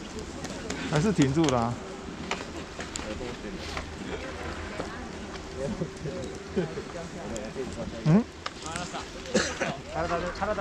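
Men and women talk nearby outdoors.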